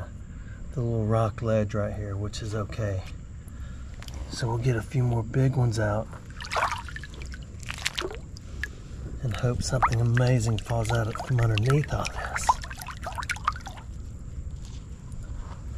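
Shallow water sloshes and splashes around a hand.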